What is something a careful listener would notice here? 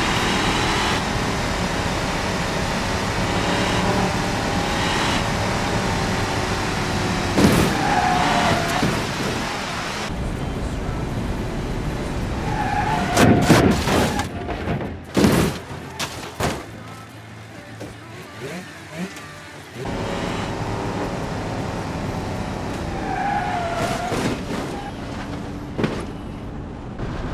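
A car engine drones steadily at speed.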